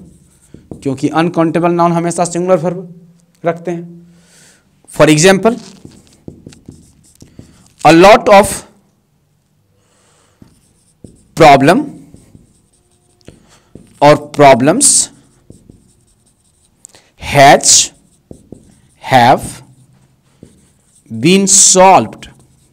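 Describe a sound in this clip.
A man speaks clearly and calmly in short phrases, close by.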